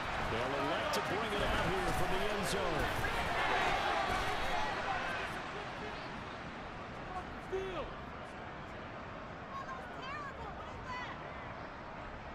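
A large crowd roars and cheers in a big stadium, loudest at first and then settling.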